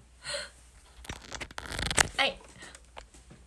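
A hand brushes and bumps against a phone's microphone.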